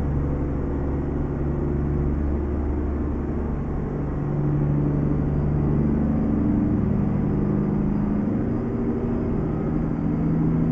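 A truck engine hums steadily, its pitch shifting as it changes gears.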